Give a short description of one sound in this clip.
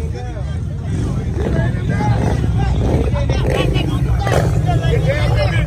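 A motorcycle engine rumbles and idles nearby.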